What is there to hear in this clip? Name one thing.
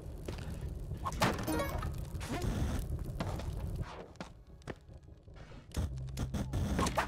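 Video game sound effects pop and whoosh in quick bursts.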